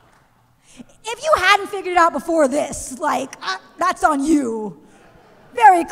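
A young woman speaks with animation into a microphone.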